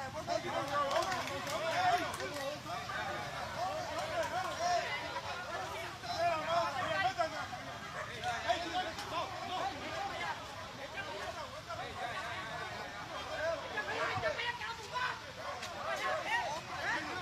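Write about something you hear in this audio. A crowd of men and women shout and yell excitedly nearby, outdoors.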